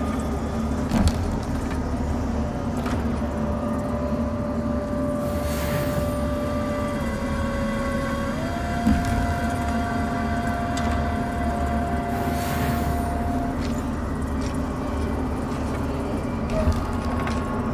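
A short menu click sounds as a game menu opens and closes.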